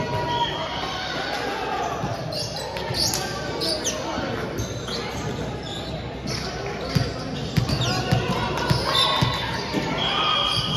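Players chatter and call out around a large echoing hall.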